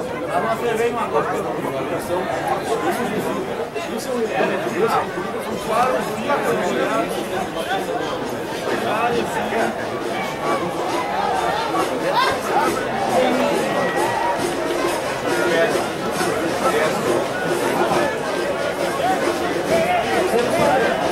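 A crowd of spectators murmurs and shouts outdoors.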